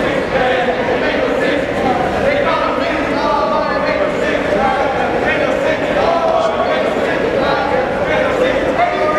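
A crowd of young people chatters and shouts in a large echoing gym.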